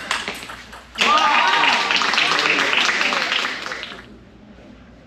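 Spectators clap.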